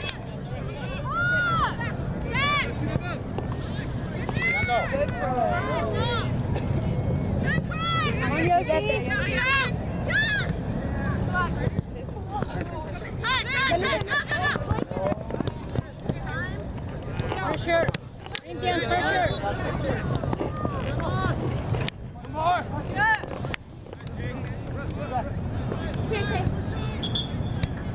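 A crowd of spectators shouts and cheers outdoors, with high excited voices.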